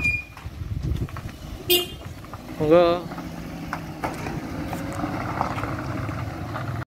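A small truck engine hums as the truck drives slowly away.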